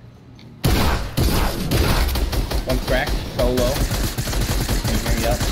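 Rapid gunshots blast loudly and repeatedly.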